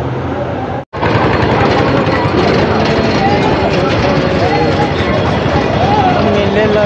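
A crowd chatters loudly outdoors.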